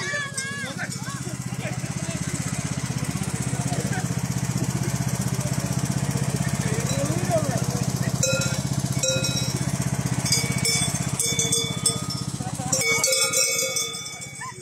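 A lawn tractor engine hums steadily close by.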